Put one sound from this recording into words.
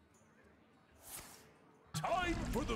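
A card game plays a soft whoosh as a card is raised.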